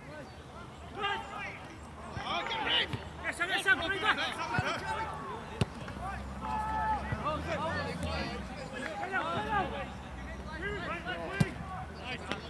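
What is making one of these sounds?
Young men shout and call to each other from a distance across an open field.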